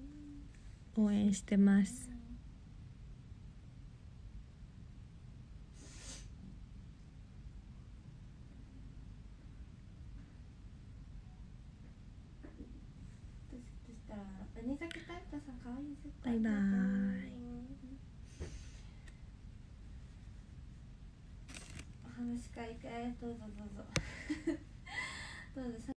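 A young woman speaks softly and close to a microphone, with pauses.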